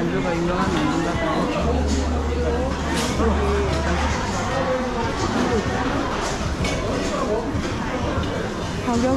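Dishes and utensils clatter now and then.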